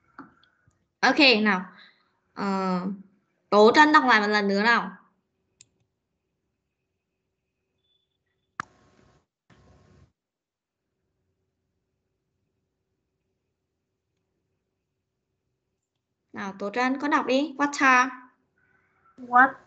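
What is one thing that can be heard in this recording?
A voice speaks in short phrases through an online call, with long pauses.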